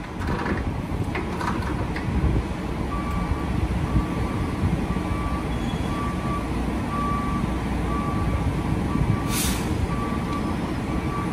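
Diesel fuel rushes steadily from a pump nozzle into a tank.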